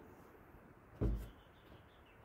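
A plastic container knocks on a hard counter.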